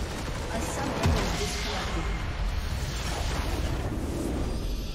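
A large crystal structure shatters in a deep, booming explosion with a long rumble.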